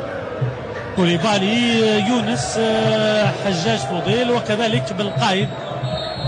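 A crowd murmurs and chants in an open stadium.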